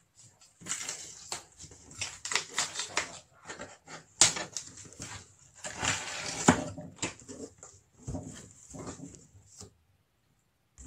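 Hands scrape and rustle against a cardboard box.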